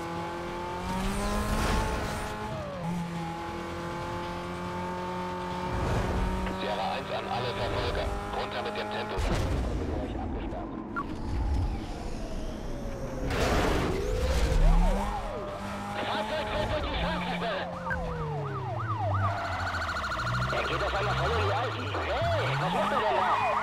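A car engine roars at high speed.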